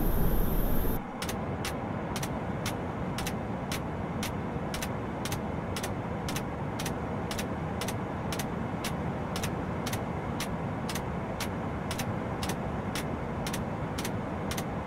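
A jet engine hums steadily from inside a cabin.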